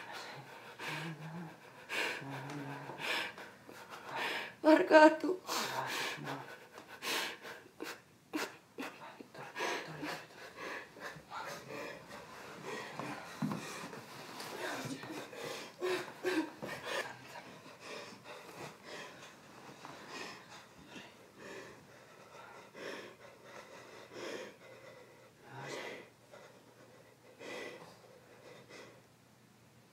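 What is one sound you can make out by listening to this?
A young man speaks softly close by.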